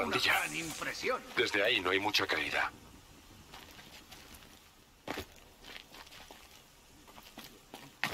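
Footsteps patter lightly on stone.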